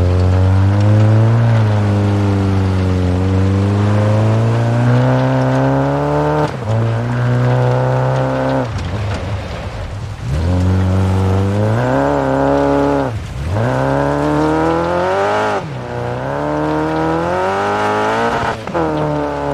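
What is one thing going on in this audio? Gravel crunches and sprays under a car's tyres.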